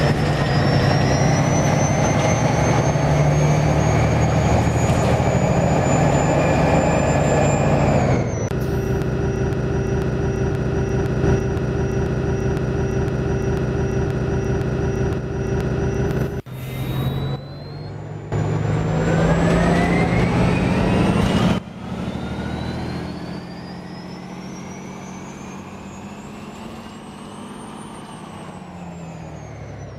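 A bus engine drones and its motor whines, rising in pitch as the bus speeds up.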